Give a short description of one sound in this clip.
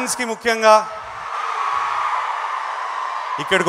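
A large crowd cheers and roars in a big hall.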